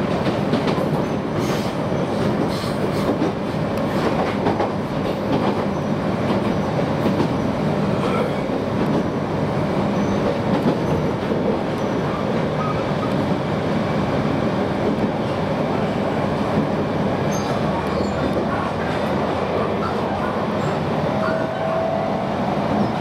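An electric train's wheels rumble on the rails, heard from inside the carriage.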